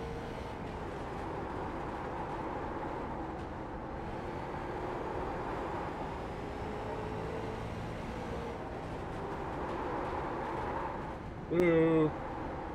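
A race car engine roars steadily as the car speeds around a track.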